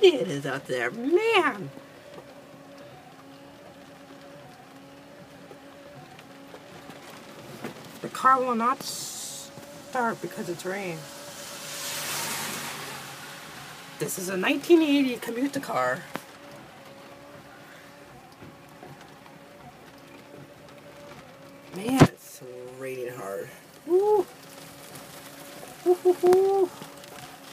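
Rain patters steadily on a car windshield.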